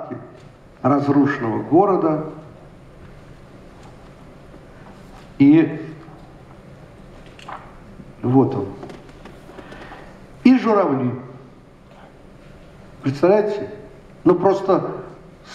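An elderly man speaks slowly through a microphone, pausing between phrases.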